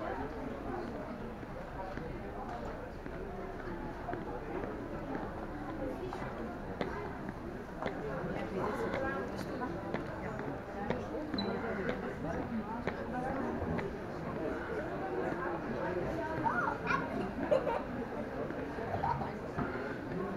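A crowd of visitors murmurs and chatters in a large echoing hall.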